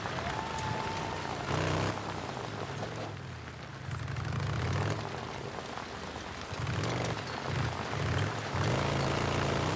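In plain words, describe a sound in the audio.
A motorcycle engine revs and rumbles as the bike rides along.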